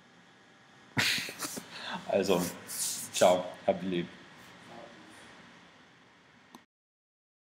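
A young man speaks close to the microphone with animation.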